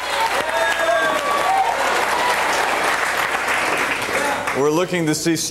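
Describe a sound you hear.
People clap their hands in applause.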